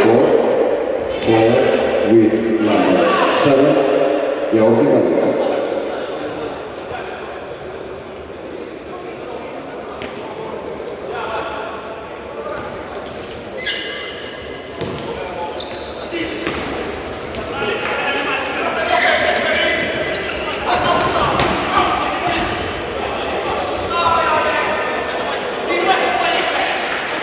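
A crowd of spectators shouts and chatters in an echoing indoor hall.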